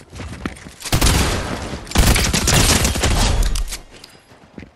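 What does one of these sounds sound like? A rifle fires in bursts in a video game.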